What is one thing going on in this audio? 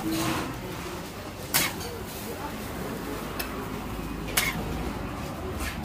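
Eggs sizzle on a hot griddle.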